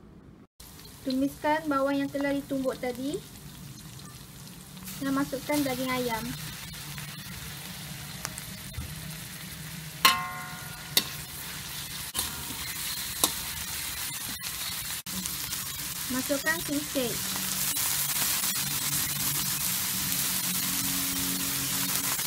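Food sizzles steadily in hot oil in a pan.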